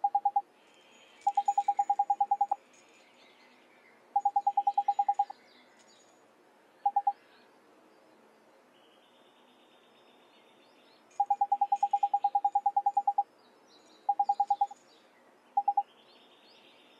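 Rapid electronic blips chatter in short bursts.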